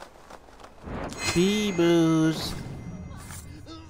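A man cries out in pain as he is stabbed.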